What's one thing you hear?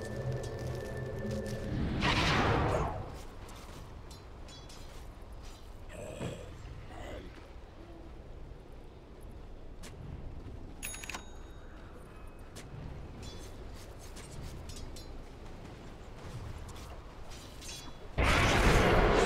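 Small game clicks and chimes sound now and then.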